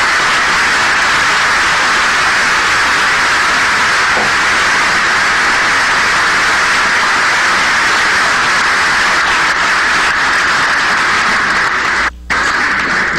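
A large crowd applauds loudly in a big hall.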